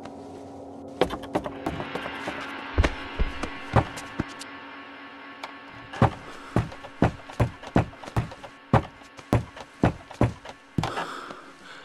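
Footsteps thud on creaky wooden stairs.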